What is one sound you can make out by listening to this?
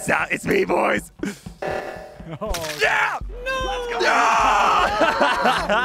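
A man laughs loudly into a close microphone.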